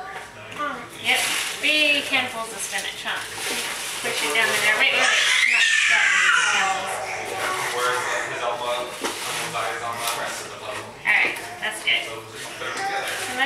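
A young boy talks excitedly nearby.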